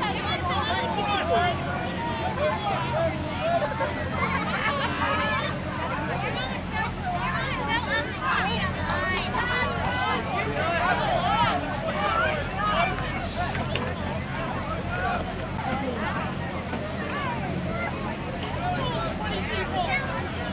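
A ball thuds as it is kicked.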